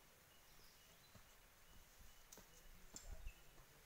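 Footsteps crunch faintly on dry leaves and stones.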